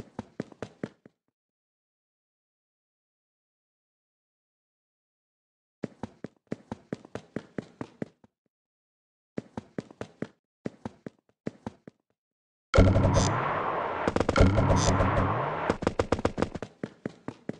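Quick footsteps of a group of small game characters patter.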